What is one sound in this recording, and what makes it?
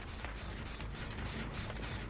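A fire crackles in a metal barrel.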